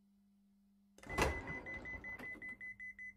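A train door slides open with a hiss.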